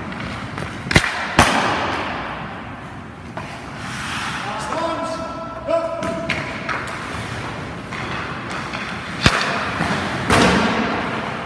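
A hockey stick sharply strikes a puck in an echoing rink.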